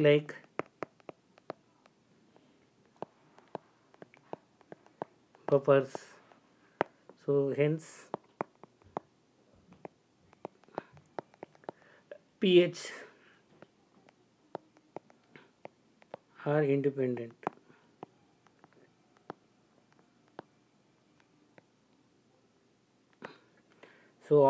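A stylus taps and scratches on a tablet.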